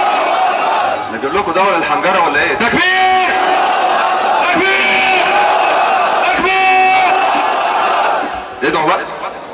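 A man sings loudly through a microphone and loudspeakers, with echo.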